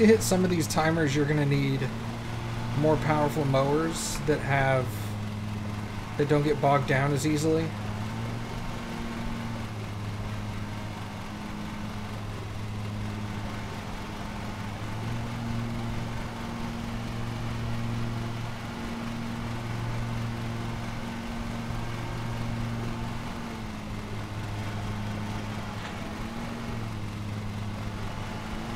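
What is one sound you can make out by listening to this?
A lawnmower engine hums steadily.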